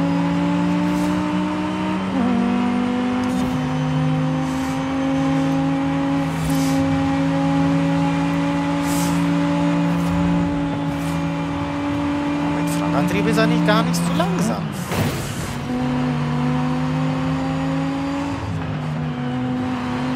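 A racing car engine roars at high revs, its pitch shifting with each gear change.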